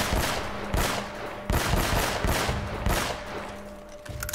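A pistol fires several shots in quick succession.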